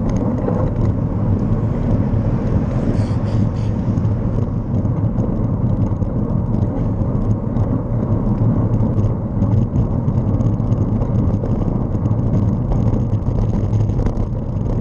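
Tyres hum on smooth asphalt.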